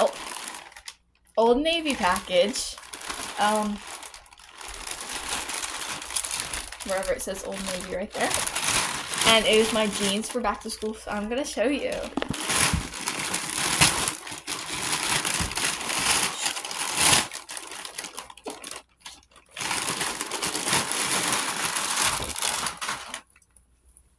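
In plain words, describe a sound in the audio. A plastic mailer bag crinkles and rustles.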